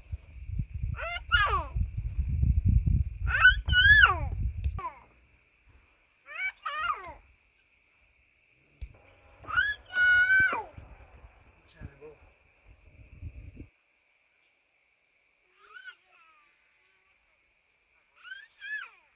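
A young child speaks in a high voice, close by.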